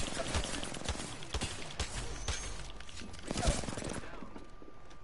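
Rapid gunfire crackles in quick bursts.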